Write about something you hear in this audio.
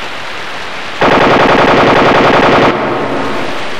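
A police siren blares briefly.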